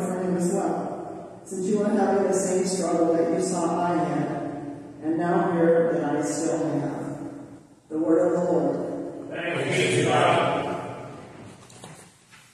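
A woman reads out aloud at a distance in an echoing room.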